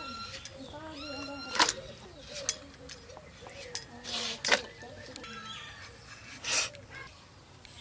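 Pieces of gourd drop into water in a metal bowl with soft splashes.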